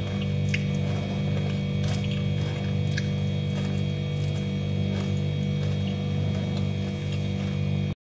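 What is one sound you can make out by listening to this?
Small items rustle and click as food is picked from a container.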